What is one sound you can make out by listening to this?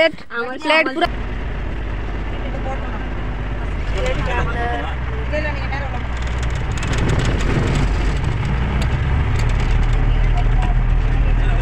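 A bus engine rumbles steadily as the bus drives.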